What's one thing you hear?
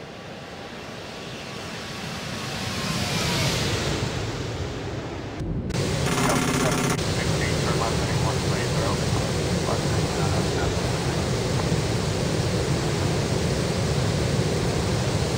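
A jet engine roars loudly, growing louder over the first few seconds.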